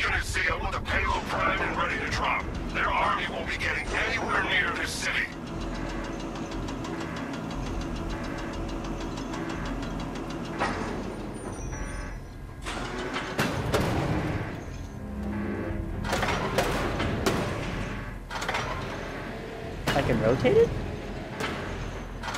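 A heavy crane platform hums and whirs as it moves through the air.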